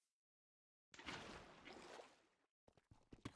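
Water splashes briefly.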